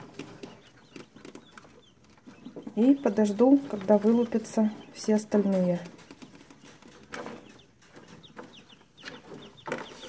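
Quail chicks peep in short, high chirps.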